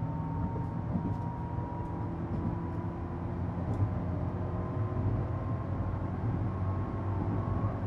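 A motor hums with a steady, rising whine.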